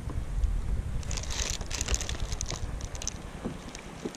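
Small plastic pieces click and rattle in a tackle tray.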